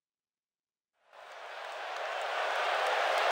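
A large crowd cheers and roars in a big echoing arena, growing louder.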